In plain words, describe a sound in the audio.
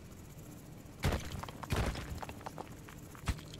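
Crackling game sound effects burst in quick succession.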